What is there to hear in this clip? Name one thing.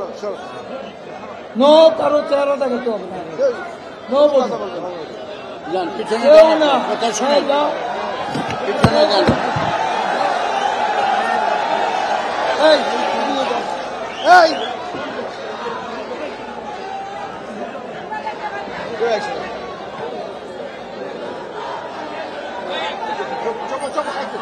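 An elderly man speaks loudly and with animation into microphones over a loudspeaker.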